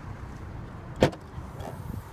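A car's tailgate latch clicks open.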